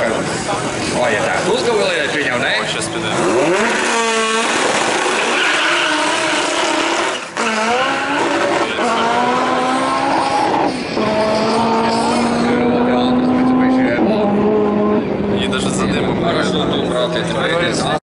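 A race car engine revs hard and roars, climbing in pitch through gear changes as it speeds away.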